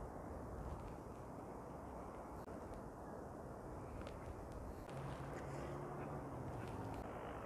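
Sweets tap softly onto a plate.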